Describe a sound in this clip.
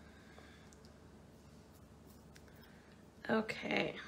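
Small beads click softly as they are handled.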